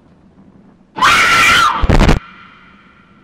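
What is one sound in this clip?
A young man shouts loudly into a microphone.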